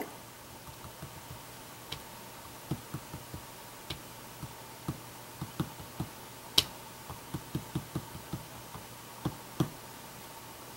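A wooden stamp taps lightly and repeatedly on paper.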